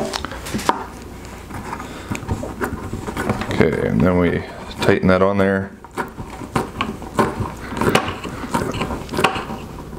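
Plastic parts click and scrape as a fitting is twisted into a bucket.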